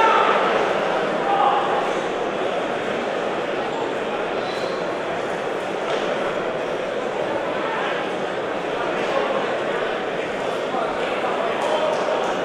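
A crowd murmurs and chatters steadily in a large echoing hall.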